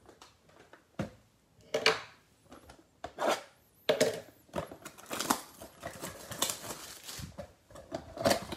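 Hands handle and shake a cardboard box, rustling and thumping.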